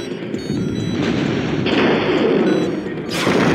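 A game weapon fires a blast.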